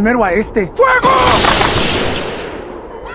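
Rifles fire a volley with a loud blast.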